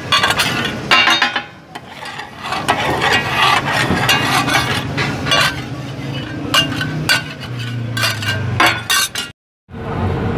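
Chicken pieces in sauce sizzle on a hot flat griddle.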